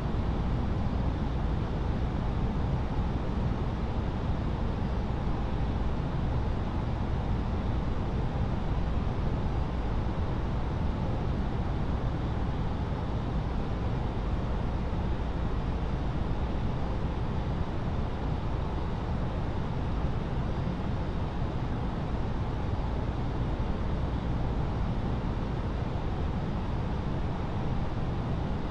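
Jet engines hum in a steady low drone.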